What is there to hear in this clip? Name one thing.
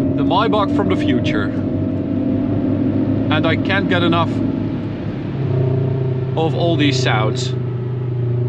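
An electric motor whines steadily as a car accelerates.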